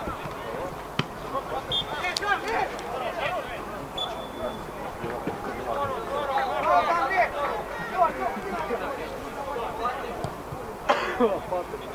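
A football thuds off a kick.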